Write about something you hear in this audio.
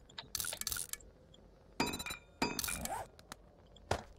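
Interface clicks and chimes sound in quick bursts.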